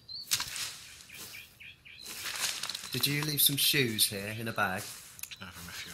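Leafy plants swish and rustle as they are hacked.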